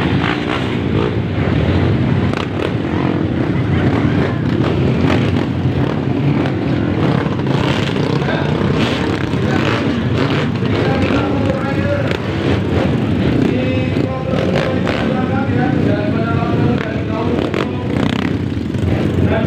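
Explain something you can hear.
Many dirt bike engines rev and roar loudly close by.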